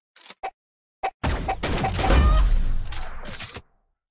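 A sniper rifle fires a single loud shot in a video game.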